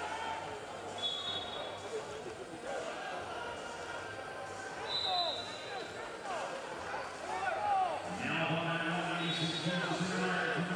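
Shoes squeak sharply on a mat.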